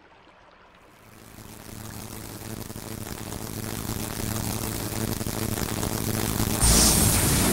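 A crackling energy blast builds steadily louder and bursts.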